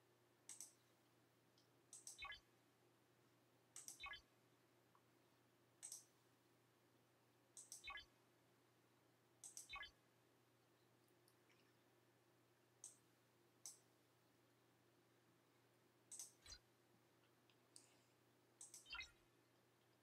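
Game menu sound effects chime as buttons are clicked.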